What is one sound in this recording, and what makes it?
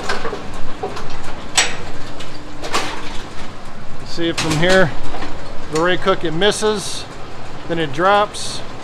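Old metal machinery clatters and clicks nearby.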